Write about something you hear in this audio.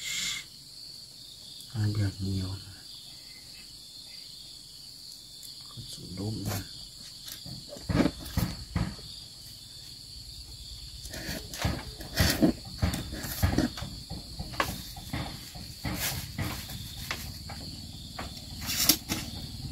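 Fishing line creaks and taps against a foam box as hooks are hung on its rim.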